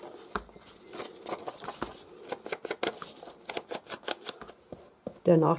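A small ink dauber taps repeatedly on paper.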